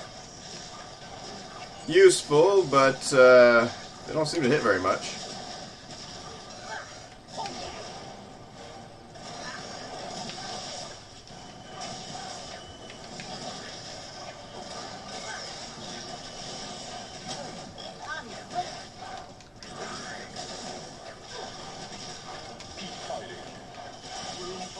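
Game blasts and zaps go off.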